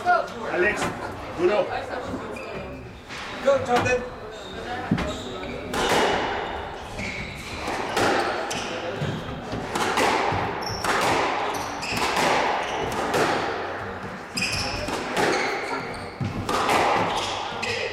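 A squash ball smacks off the walls with sharp echoing cracks in a large hall.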